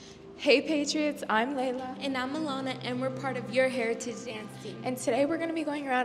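A second young woman speaks into a handheld microphone.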